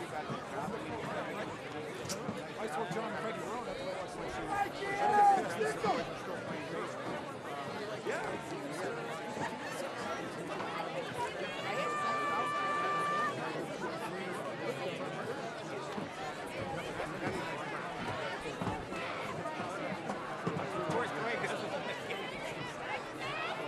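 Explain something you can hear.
A crowd of spectators chatters and murmurs close by, outdoors.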